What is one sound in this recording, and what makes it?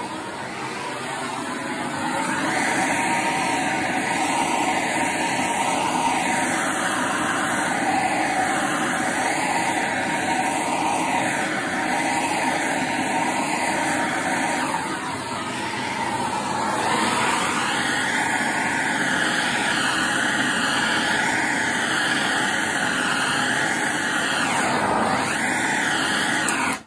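A blowtorch flame roars steadily close by.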